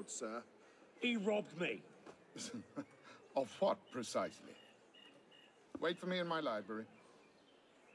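A middle-aged man answers in a low, firm voice.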